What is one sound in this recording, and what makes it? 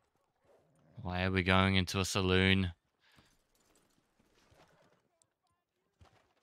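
Horse hooves clop slowly on a dirt road.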